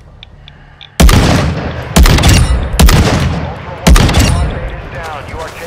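A rifle fires loud sniper shots that echo.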